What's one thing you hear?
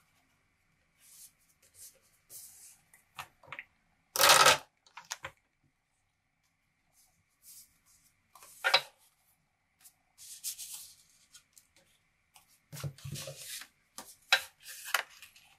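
Paper and card rustle and scrape as they are handled.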